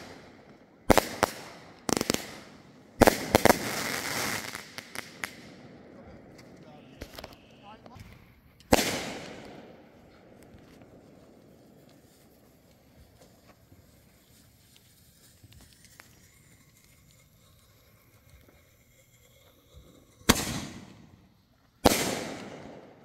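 Aerial firework shells burst with sharp bangs that echo outdoors.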